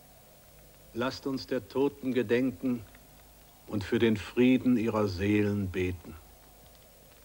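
A man speaks loudly and solemnly outdoors.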